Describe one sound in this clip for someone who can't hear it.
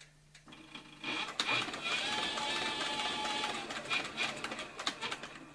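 A sewing machine runs, stitching steadily.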